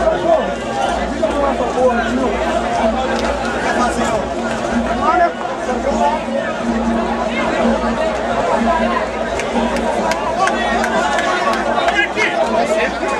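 A large crowd sings and shouts loudly outdoors.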